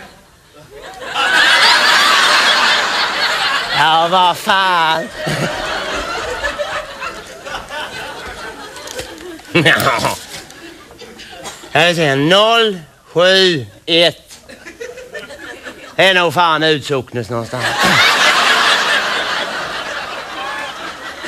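An audience laughs and applauds.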